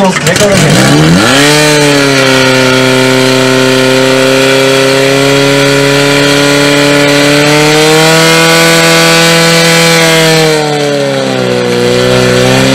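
A petrol pump engine revs up and roars loudly and steadily.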